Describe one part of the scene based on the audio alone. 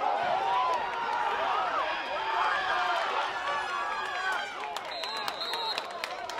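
Football players' pads collide in a tackle.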